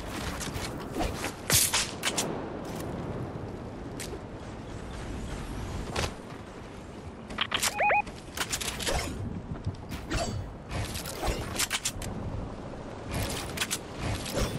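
Video game building pieces clatter into place.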